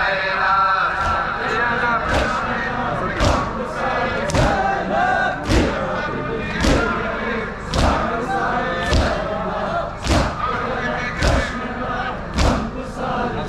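Men beat their chests in a steady rhythm, with sharp slaps.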